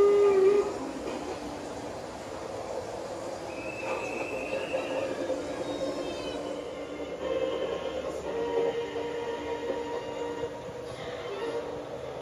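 A model train rattles along its tracks.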